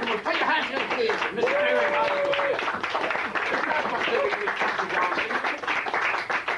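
A man claps his hands in rhythm.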